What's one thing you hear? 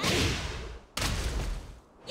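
Water splashes hard as a fighter is slammed down into it.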